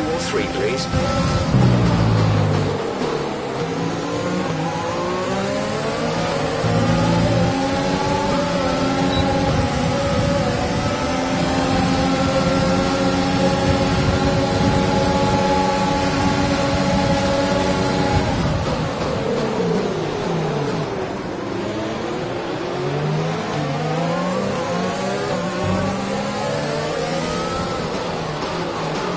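A racing car engine screams at high revs, rising and falling as the car shifts gears and brakes.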